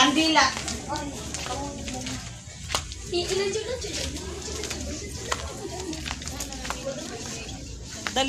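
Footsteps tread on grass and loose stones outdoors.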